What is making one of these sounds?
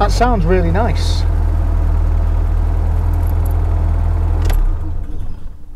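A car engine idles with a low, steady rumble and then cuts off.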